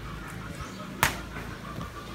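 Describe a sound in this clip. A punch smacks sharply against a boxing pad.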